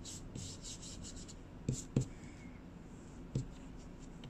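A foam ink tool dabs and pats softly on paper.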